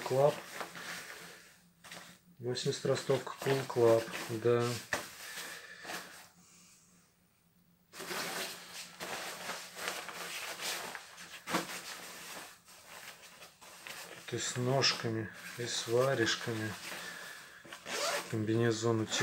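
Padded jacket fabric rustles and swishes as hands handle it.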